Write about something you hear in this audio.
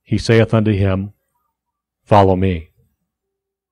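A middle-aged man speaks slowly and calmly into a microphone.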